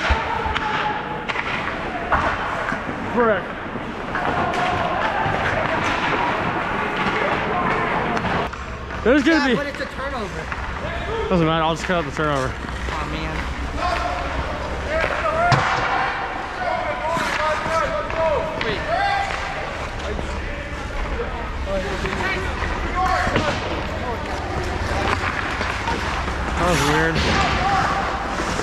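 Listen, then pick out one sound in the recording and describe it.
Young players shout and call out across a large echoing rink.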